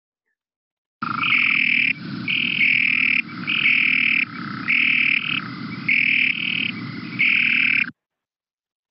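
A recorded treefrog call plays in short, repeated buzzing trills.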